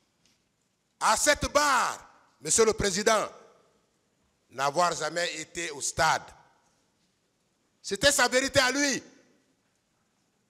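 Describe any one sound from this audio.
A man speaks forcefully into a microphone in short bursts, with pauses between.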